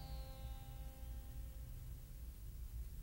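A plucked string instrument rings out and slowly fades.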